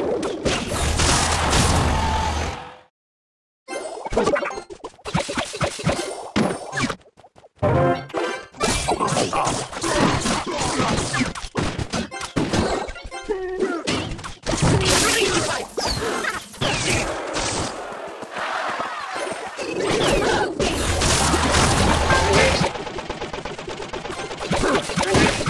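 Video game battle effects crackle and boom.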